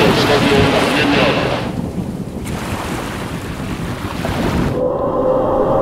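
Rocket engines roar loudly.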